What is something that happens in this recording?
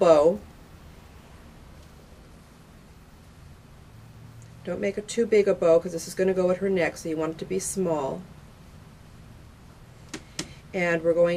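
Fingers softly rustle a thin ribbon while tying it.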